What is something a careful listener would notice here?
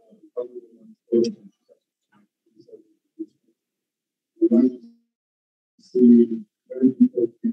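A man speaks in short, solemn phrases with pauses, heard through an online call.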